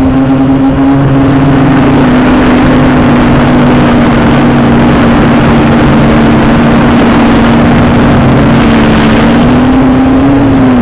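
A small aircraft's electric motor whines steadily close by, its pitch wavering slightly.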